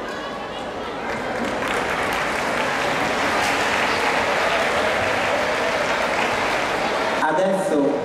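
A large crowd of children cheers and chatters loudly outdoors.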